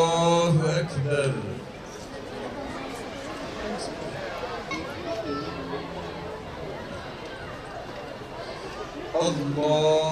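An elderly man chants loudly through a microphone and loudspeaker, outdoors.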